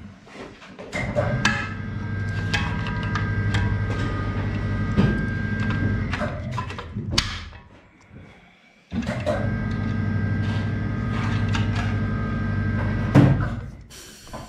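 A starter motor whirs and grinds loudly in two long bursts.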